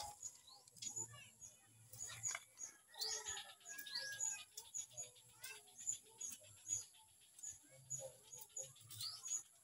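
Leaves rustle as turkeys peck at a bundle of greens.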